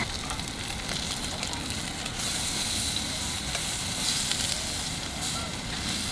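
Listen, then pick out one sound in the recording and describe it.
Tongs scrape against a pan.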